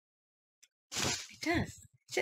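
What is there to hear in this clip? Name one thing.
Cloth rustles as a blanket is shaken.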